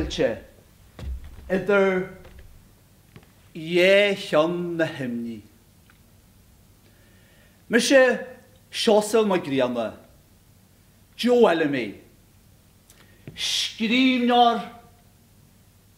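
A man declaims loudly and theatrically in a room with slight echo.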